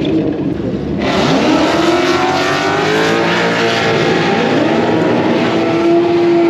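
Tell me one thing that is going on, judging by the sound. Race cars roar away down the track.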